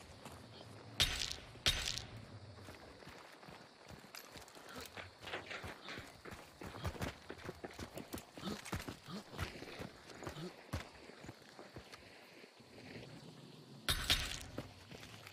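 Rifle shots ring out sharply, with a short echo.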